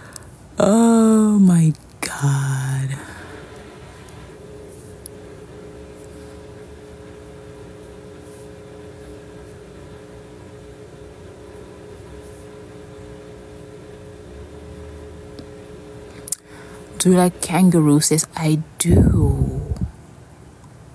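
A young woman speaks and laughs close to a phone microphone.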